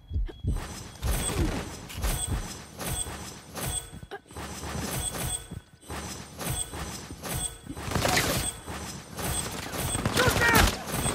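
Small bright chimes ring out again and again as treasures are picked up.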